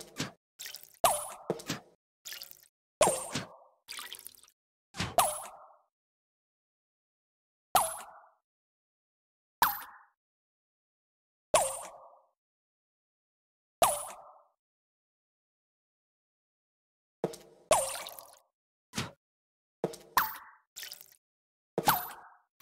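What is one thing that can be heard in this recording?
Coins chime one at a time with bright clinks.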